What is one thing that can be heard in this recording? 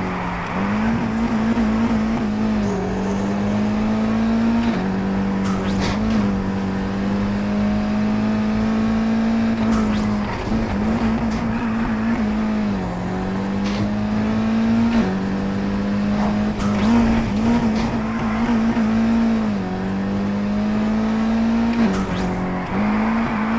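Tyres screech as a car drifts around bends.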